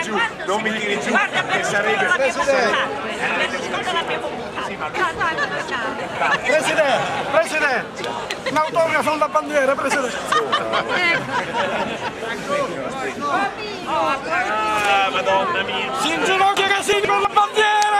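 A crowd of men and women chatters and cheers loudly close by.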